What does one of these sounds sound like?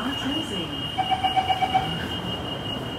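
A door-closing chime beeps rapidly.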